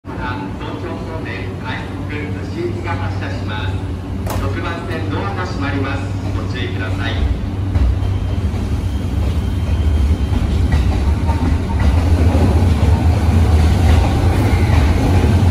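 An electric commuter train hums while standing at a platform.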